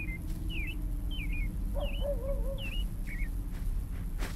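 Birds chirp and call overhead.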